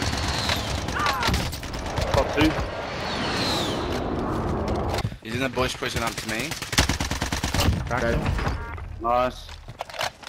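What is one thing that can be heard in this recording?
Rifle shots crack in quick bursts.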